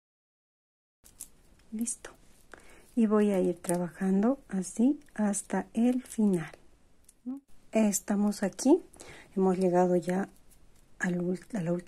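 Plastic beads click softly as they are handled.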